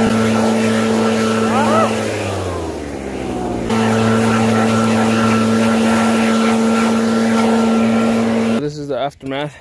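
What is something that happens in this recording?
A leaf blower roars steadily close by.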